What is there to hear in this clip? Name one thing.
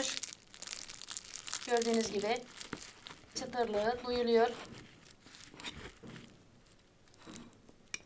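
A knife crunches through crisp, flaky pastry.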